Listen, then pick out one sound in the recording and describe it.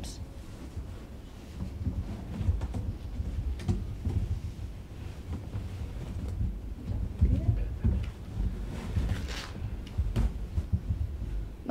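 Cloth rustles as a cover is pulled over a box.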